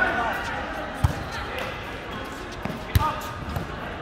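A volleyball is struck by hands with sharp slaps.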